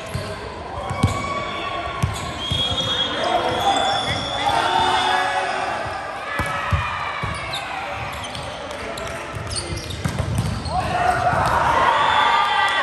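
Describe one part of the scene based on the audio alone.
A volleyball thuds as players hit it.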